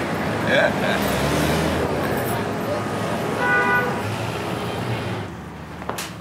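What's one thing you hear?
Traffic rumbles past on a street.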